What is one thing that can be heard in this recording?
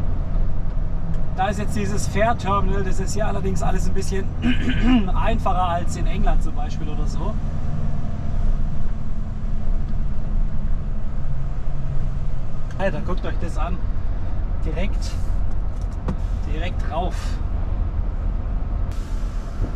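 A truck engine rumbles steadily from inside the cab while driving.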